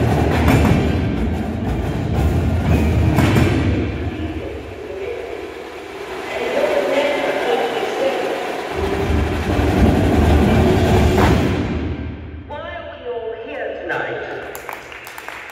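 A drumline plays loudly in a large echoing hall.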